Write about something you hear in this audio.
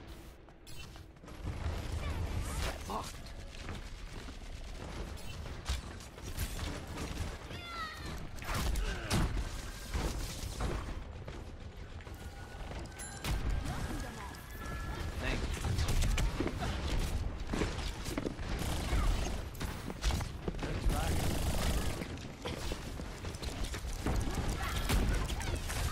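A bow twangs as arrows are loosed in quick succession.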